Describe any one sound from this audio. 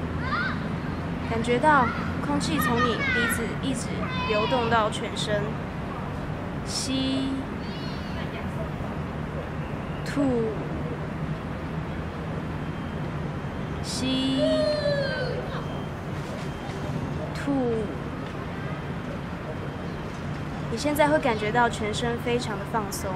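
A young woman speaks slowly and calmly, close by, with long pauses.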